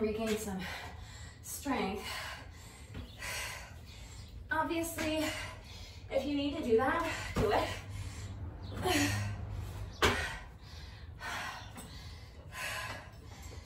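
A woman breathes hard in short bursts.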